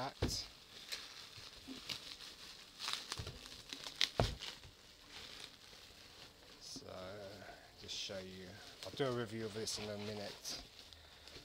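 Bubble wrap crinkles and rustles as hands handle it.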